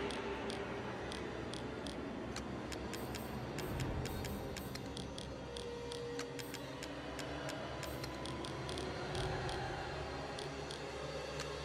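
Soft menu clicks tick quickly one after another.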